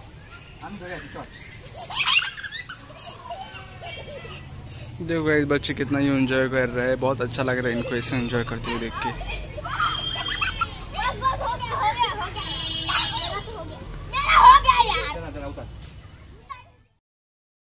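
Children shout and laugh close by.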